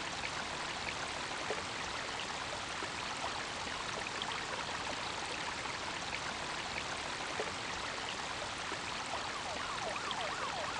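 Water rushes and splashes steadily through an echoing tunnel.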